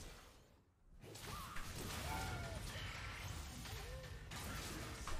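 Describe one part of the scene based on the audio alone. Video game combat sounds of spells and hits burst loudly.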